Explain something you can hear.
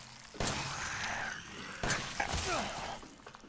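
A pistol fires a few sharp shots.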